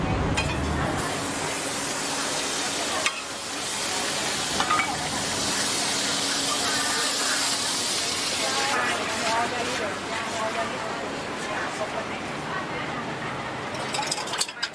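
Oil sizzles on a hot griddle.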